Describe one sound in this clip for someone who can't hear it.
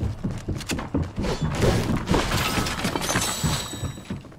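A pickaxe strikes a metal counter repeatedly.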